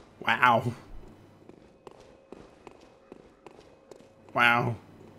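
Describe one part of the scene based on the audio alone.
A man speaks briefly and with animation, close to a microphone.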